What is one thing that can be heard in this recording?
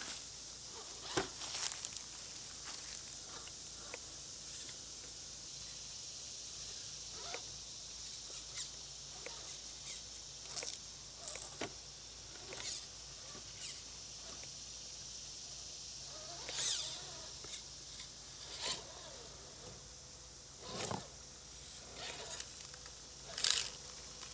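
A small electric motor whines as a toy truck crawls over rocks.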